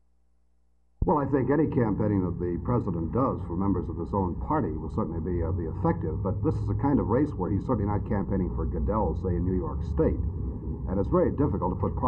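A middle-aged man speaks firmly and steadily, close to a microphone.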